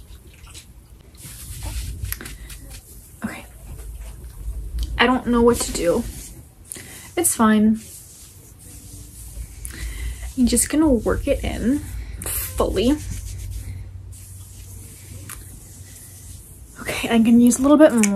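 Hands rustle through hair.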